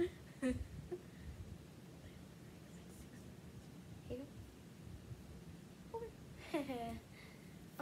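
A young girl laughs.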